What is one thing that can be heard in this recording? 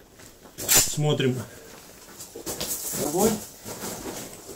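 A man speaks briefly in a low voice nearby.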